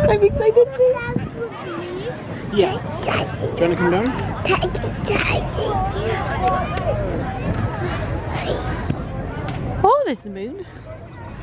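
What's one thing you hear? A baby girl babbles and squeals close by.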